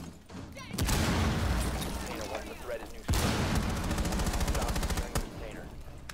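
A rifle fires rapid bursts of gunshots at close range.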